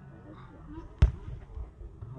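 A football is kicked with a sharp thump.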